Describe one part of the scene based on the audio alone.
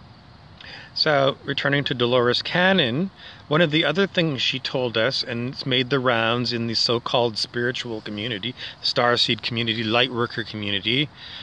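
A middle-aged man talks calmly and close up.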